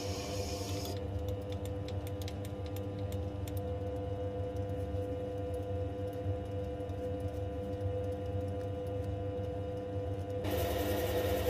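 A toothbrush brushes chips off a spinning part.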